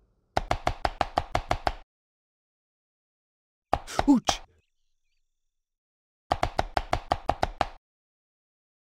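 A knife chops food on a board in quick bursts.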